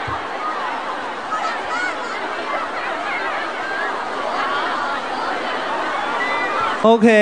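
A large crowd screams and cheers in a big echoing hall.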